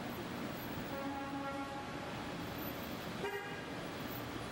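A car horn honks briefly.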